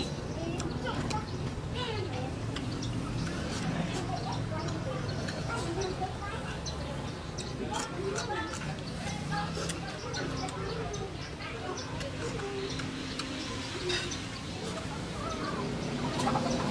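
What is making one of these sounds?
A woman chews and slurps food loudly close by.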